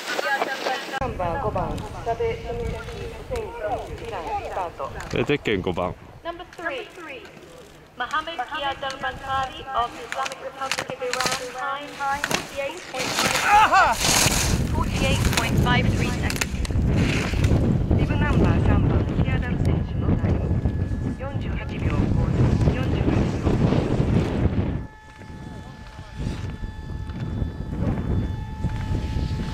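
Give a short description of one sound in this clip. Skis scrape and hiss over hard snow in quick turns.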